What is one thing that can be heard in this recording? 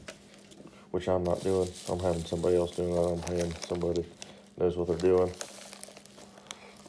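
Plastic bubble wrap crinkles as a hand pulls it back.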